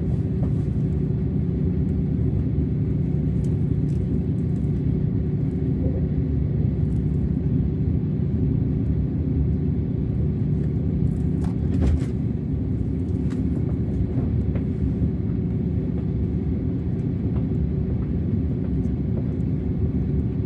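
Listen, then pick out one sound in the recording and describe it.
A train rumbles steadily along the tracks with a low, constant roar.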